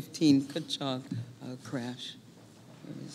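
A woman speaks into a microphone to a room.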